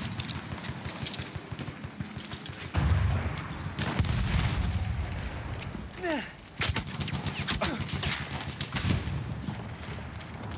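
Gunshots crack in rapid bursts nearby.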